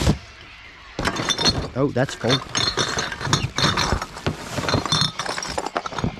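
Glass bottles and cans clink and rattle as a hand sorts them.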